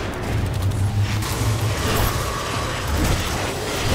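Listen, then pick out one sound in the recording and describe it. A loud blast booms and crackles.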